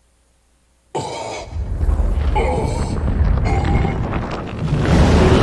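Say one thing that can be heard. A creature speaks in a deep, menacing voice.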